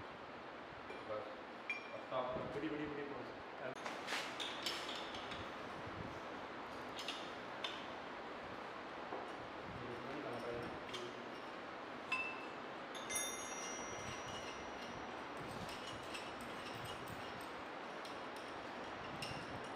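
Metal parts clink and knock as hands handle a steel mould.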